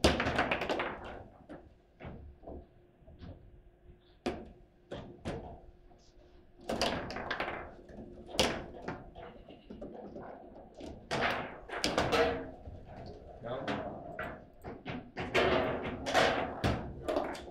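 A foosball ball clacks sharply against rods and players.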